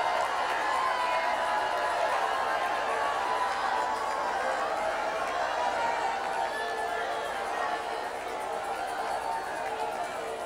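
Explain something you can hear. A woman sings close by.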